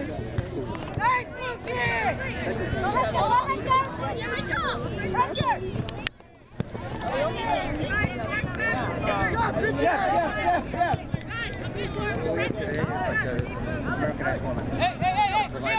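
A crowd of spectators cheers and shouts from the sidelines.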